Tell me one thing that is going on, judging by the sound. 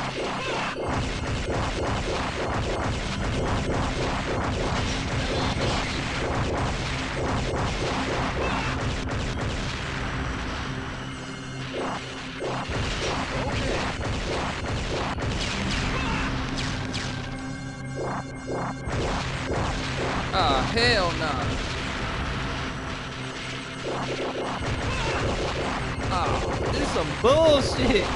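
Rapid game gunfire crackles and pops.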